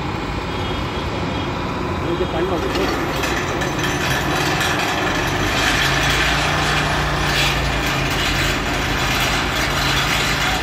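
Heavy machinery rumbles and clanks steadily outdoors.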